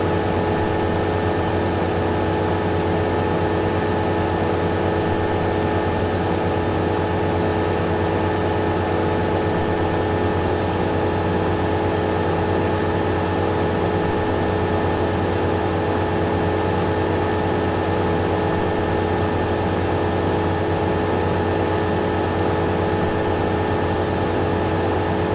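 A large harvester engine drones steadily and loudly.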